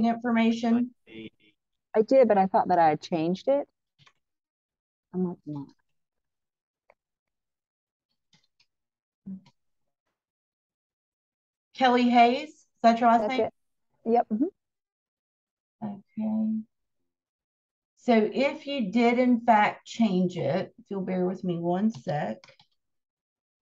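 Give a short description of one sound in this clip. A woman speaks calmly and clearly into a microphone, with pauses.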